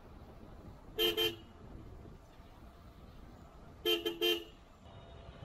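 A bicycle bell rings in short bursts.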